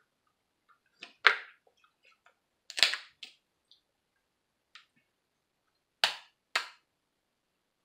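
Crab shells crack and snap between fingers close by.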